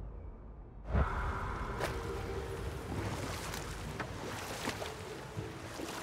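Water laps and rushes along a wooden boat.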